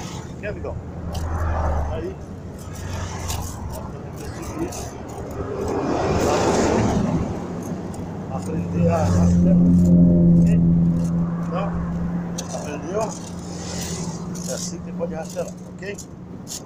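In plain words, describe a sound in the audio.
A rake scrapes through dry grass.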